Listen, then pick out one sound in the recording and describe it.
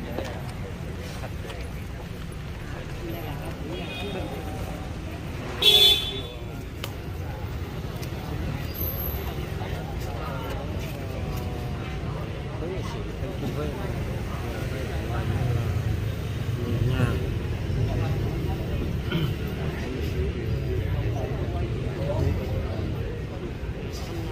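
A crowd of men and women murmurs and talks nearby outdoors.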